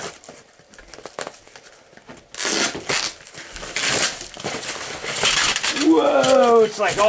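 Cardboard rustles and scrapes as a box is opened.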